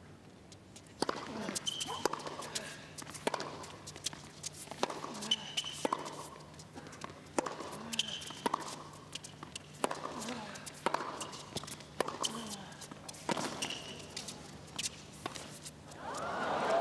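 Tennis balls are struck sharply back and forth by rackets.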